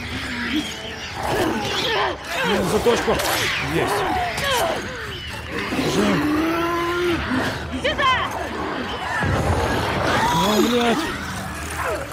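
A creature snarls and shrieks close by.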